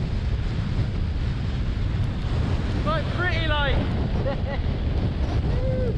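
Strong wind roars and buffets against a microphone outdoors.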